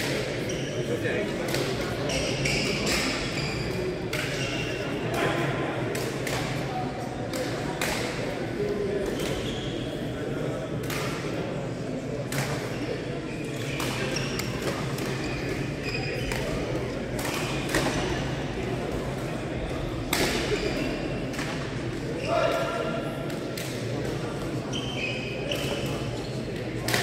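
Badminton rackets strike shuttlecocks with sharp pops.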